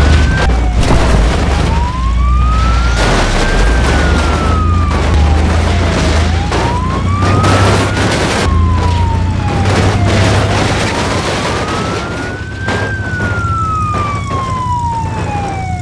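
Metal crunches and scrapes as a heavy truck drives over a crushed car.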